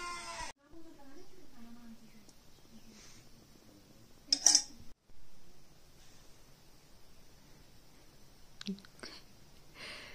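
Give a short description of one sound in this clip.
A spoon clinks against a metal plate.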